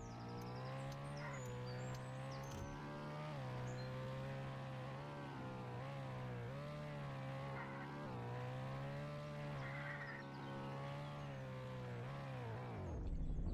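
A car engine drones steadily at speed, its pitch dipping and rising as it shifts.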